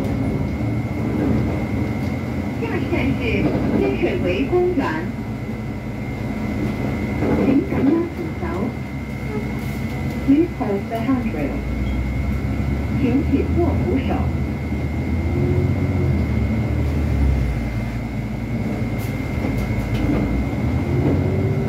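A bus engine hums and rumbles steadily from inside the cab.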